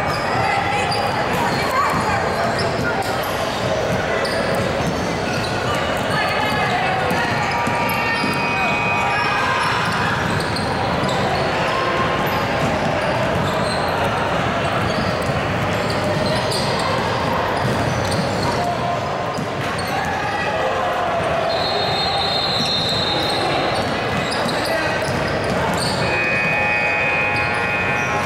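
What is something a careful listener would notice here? Young women players call out and shout to each other.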